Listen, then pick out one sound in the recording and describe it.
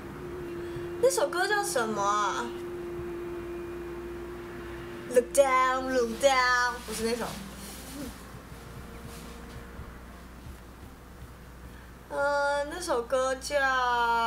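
A young woman sings close to a microphone in short phrases.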